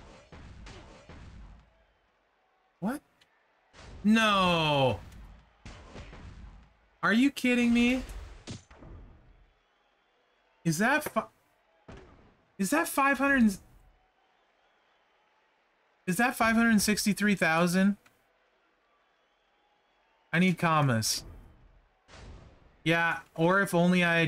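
Punches and body slams thud in a wrestling video game.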